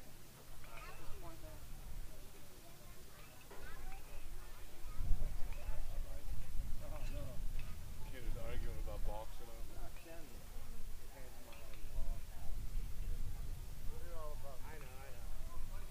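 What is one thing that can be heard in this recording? Men call out across an open field outdoors.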